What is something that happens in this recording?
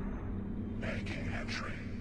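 Water ripples gently in a basin.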